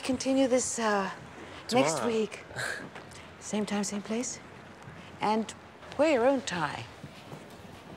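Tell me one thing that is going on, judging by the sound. A woman talks with animation, close by.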